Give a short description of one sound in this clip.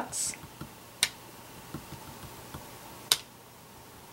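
A wooden stamp taps lightly on paper.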